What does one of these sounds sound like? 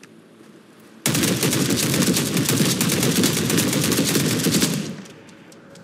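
A rifle fires a rapid, loud burst of automatic shots.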